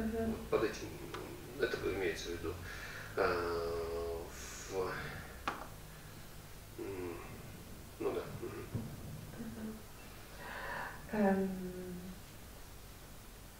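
A man speaks calmly into a headset microphone, with pauses.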